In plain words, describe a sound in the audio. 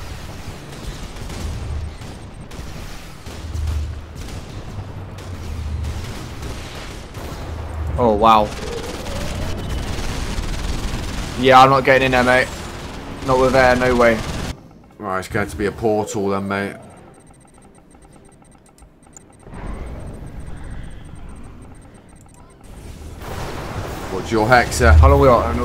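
Laser weapons zap repeatedly.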